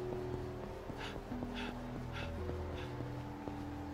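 Footsteps slap quickly on wet pavement.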